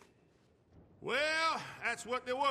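An older man speaks gruffly.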